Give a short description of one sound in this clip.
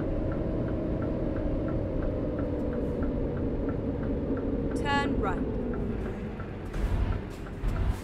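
A turn signal ticks in a regular rhythm.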